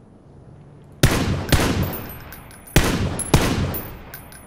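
Sniper rifle shots ring out sharply and echo.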